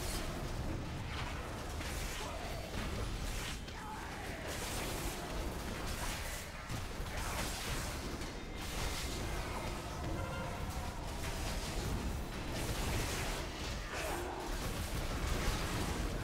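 Magic spells crackle and whoosh during a fierce battle.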